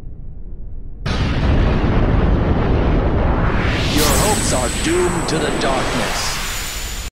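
A loud rushing roar bursts out as a winged creature rises.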